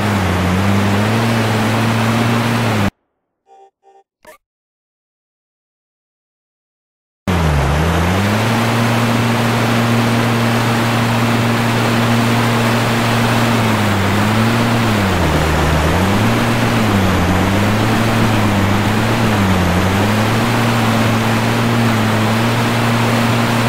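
A boat engine drones steadily, its pitch dipping and rising.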